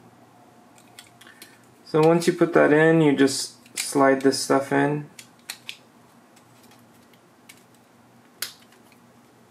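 A plastic drive tray clicks and taps as hands handle it.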